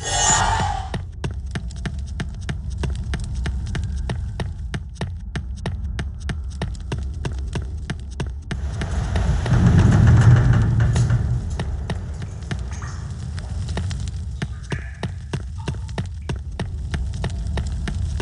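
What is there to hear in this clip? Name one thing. Footsteps tap steadily on a stone floor, echoing slightly.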